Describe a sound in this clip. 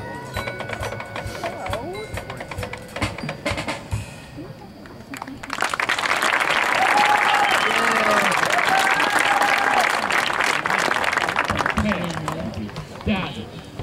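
A marching band plays brass and drums outdoors.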